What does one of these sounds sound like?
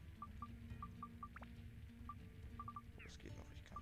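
Short electronic menu blips sound in quick succession.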